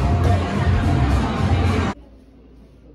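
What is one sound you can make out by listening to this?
Loud arcade game machines ring and clatter nearby.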